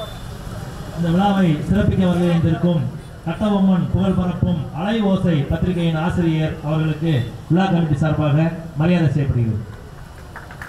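A man speaks loudly into a microphone over a loudspeaker, in an echoing open space.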